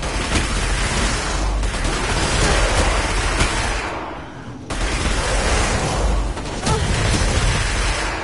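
Explosions boom nearby.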